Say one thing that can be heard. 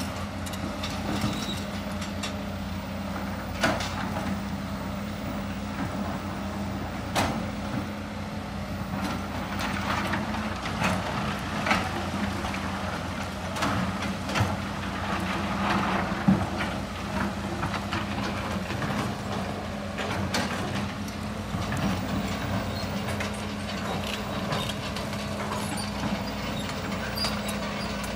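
Rocks clatter and knock as excavator buckets dig and dump.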